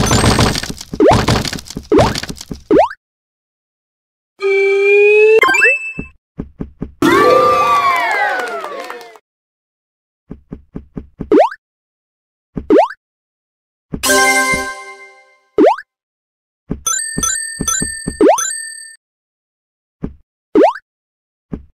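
Springy cartoon jump sounds rise quickly, again and again.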